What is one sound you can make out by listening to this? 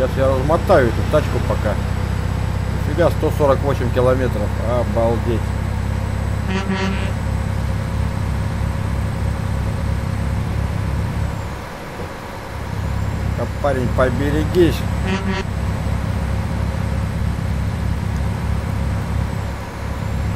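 A truck engine drones steadily, easing off briefly before picking up again.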